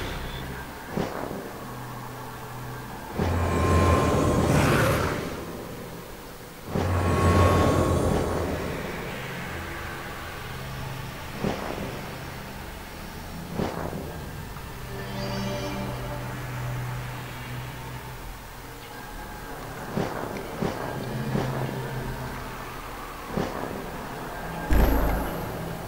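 Short soft clicks sound now and then as menu items are selected.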